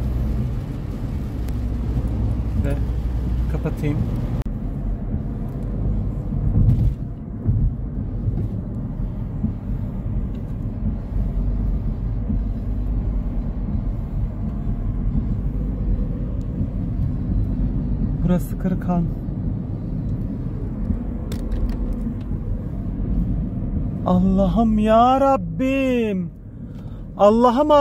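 A car engine hums and tyres roll steadily on a road, heard from inside the car.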